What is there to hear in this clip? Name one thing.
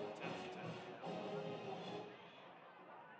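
A marching band plays brass and drums outdoors, then stops.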